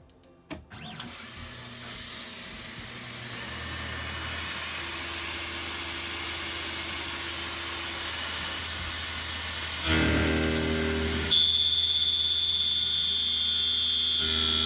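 A milling machine motor hums and whines steadily.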